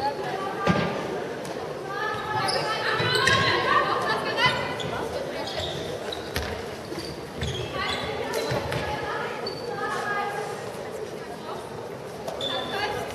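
Young girls shout and call out to each other in a large echoing hall.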